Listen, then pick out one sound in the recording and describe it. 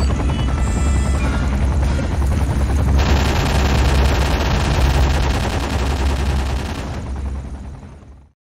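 A helicopter's rotor thumps overhead and fades away.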